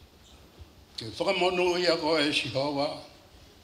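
An elderly man sings out in a long, held voice through a microphone.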